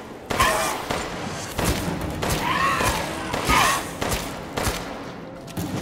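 A pistol fires shots.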